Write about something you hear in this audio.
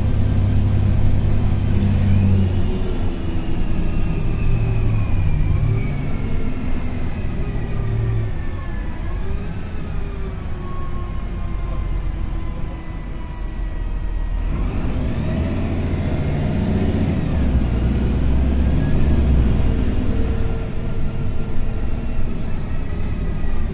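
Tyres rumble on the road beneath a moving bus.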